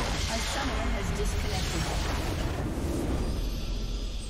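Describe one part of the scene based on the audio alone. A loud game explosion booms and rumbles.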